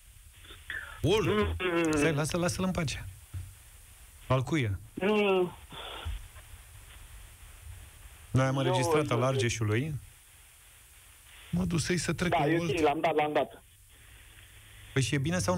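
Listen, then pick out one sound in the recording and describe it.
Men talk calmly into close microphones.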